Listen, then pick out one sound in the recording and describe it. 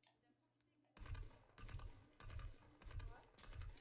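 A gun fires in quick bursts of shots.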